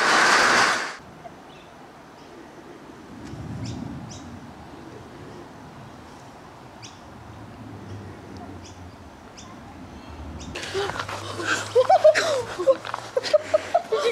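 A cat scampers through grass, rustling softly.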